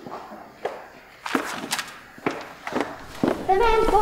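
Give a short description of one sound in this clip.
Footsteps knock on a wooden stage.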